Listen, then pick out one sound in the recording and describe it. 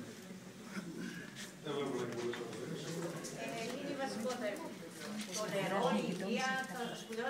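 A crowd murmurs quietly.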